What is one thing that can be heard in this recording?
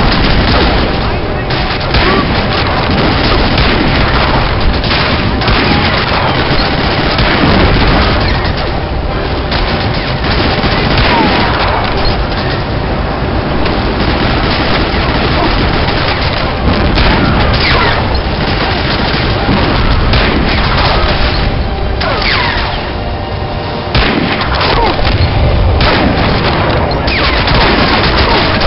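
Rifle shots crack again and again.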